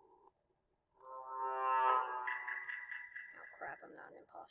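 A short tune of rising electronic notes plays loudly.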